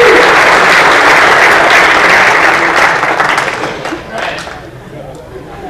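An audience applauds loudly in a large hall and the applause fades.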